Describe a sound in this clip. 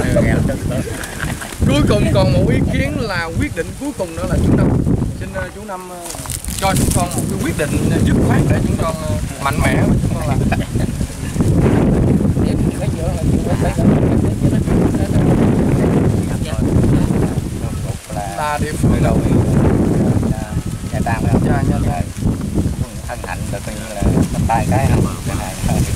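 A man speaks with animation outdoors, close by.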